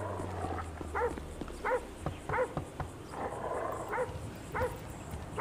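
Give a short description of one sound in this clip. A hand knocks on a wooden door.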